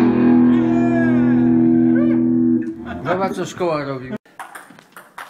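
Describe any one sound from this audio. An electric guitar plays loud ringing chords.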